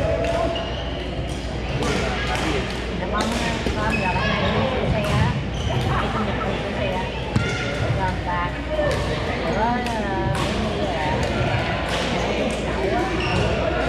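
Many people talk and call out, echoing in a large hall.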